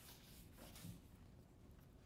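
A man erases a whiteboard with a quick rubbing sound.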